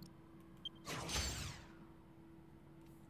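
A video game menu chimes as a choice is confirmed.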